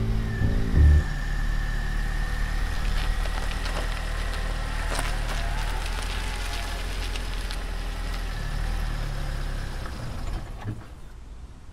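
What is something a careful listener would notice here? A car engine hums as the car pulls away slowly.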